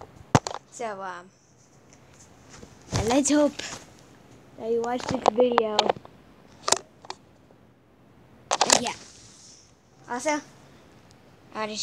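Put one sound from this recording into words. A young girl talks playfully, close to the microphone.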